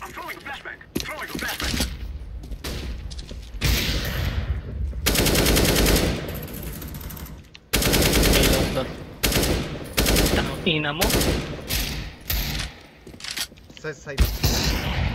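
Rifle shots fire in short bursts.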